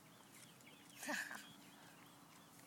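A young boy laughs.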